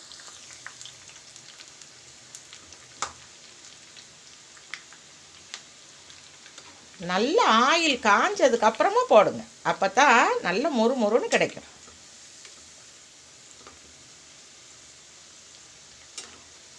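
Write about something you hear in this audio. Oil sizzles and bubbles steadily in a pan.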